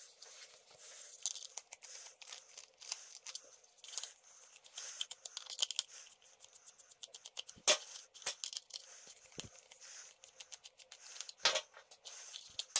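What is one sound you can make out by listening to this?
Plastic parts click and knock together.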